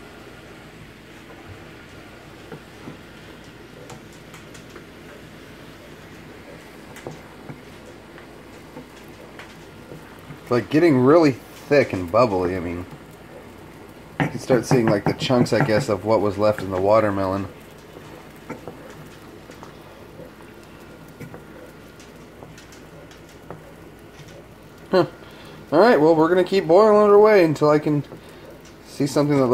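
A wooden spatula scrapes and stirs in a pan.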